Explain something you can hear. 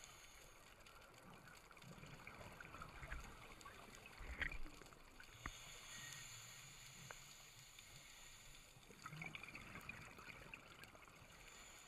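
Air bubbles gurgle and rumble from a diver's breathing underwater.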